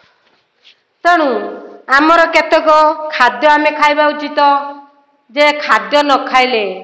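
A middle-aged woman sings out loudly, close by.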